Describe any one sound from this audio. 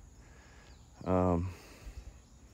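A man says a short word in a deep, calm voice, close by.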